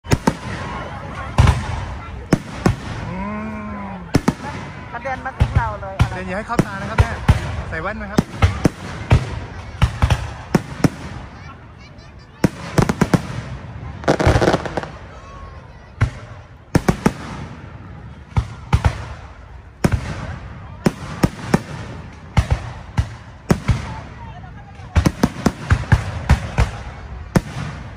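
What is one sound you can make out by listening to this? Fireworks burst with loud booms and sharp bangs.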